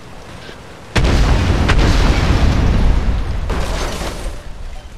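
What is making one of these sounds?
A car explodes with a loud, rumbling boom.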